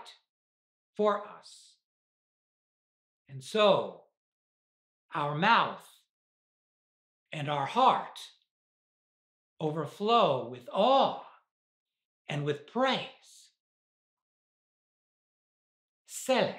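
An elderly man preaches slowly and deliberately into a microphone, pausing between phrases.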